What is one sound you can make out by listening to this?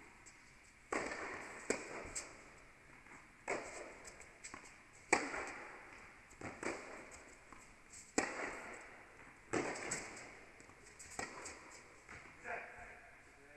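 Tennis balls are struck with a sharp pop that echoes around a large indoor hall.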